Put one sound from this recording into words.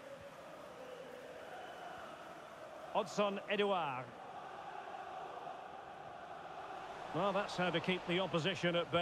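A stadium crowd murmurs and cheers steadily in the background.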